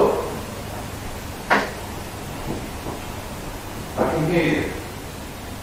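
A young man speaks quietly into a close microphone.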